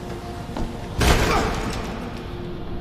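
An explosion bursts with a loud roar and then fades.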